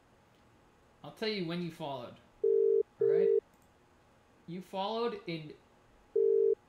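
A man speaks calmly over a phone line.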